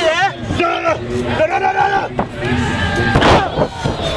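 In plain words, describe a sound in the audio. A body slams down hard onto a wrestling mat with a heavy thud.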